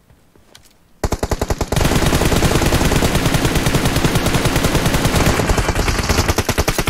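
Rapid gunfire rattles loudly and without pause.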